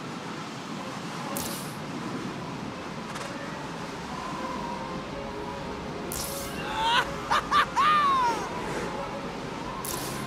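Wind rushes steadily past during a fall.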